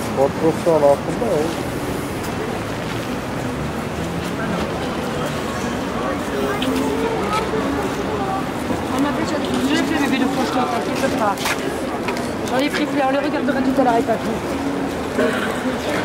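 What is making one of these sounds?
A crowd of people chatters outdoors in the street.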